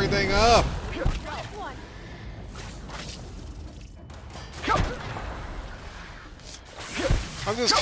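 A heavy hammer strikes with dull thuds.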